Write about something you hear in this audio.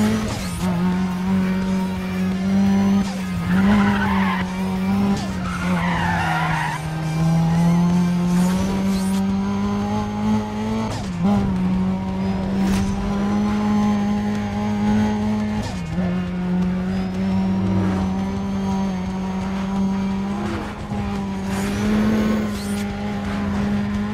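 A car engine roars steadily at high revs, dropping briefly as gears shift.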